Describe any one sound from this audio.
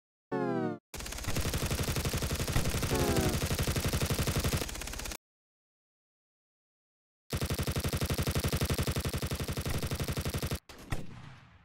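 A game rifle fires rapid bursts of shots.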